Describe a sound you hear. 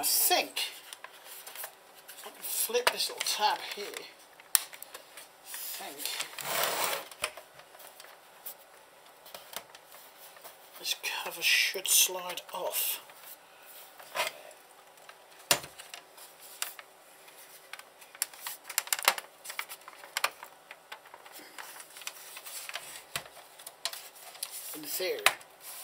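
A plastic device scrapes and knocks against a hard surface as it is handled.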